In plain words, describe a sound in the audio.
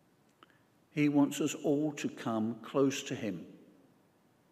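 An elderly man speaks calmly into a microphone in a reverberant room.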